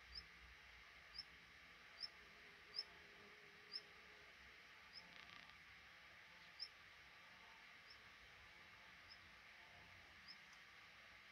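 Young birds in a nest chirp in short, high peeps.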